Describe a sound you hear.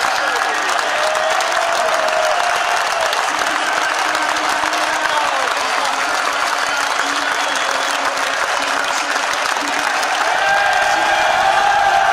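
A large stadium crowd sings and chants loudly in the open air.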